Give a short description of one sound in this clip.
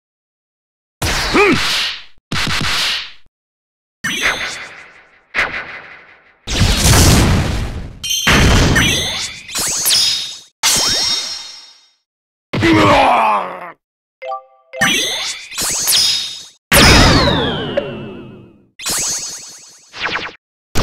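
Video game attack effects whoosh, crash and boom in short bursts.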